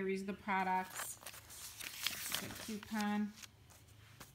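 Paper pages rustle and flip.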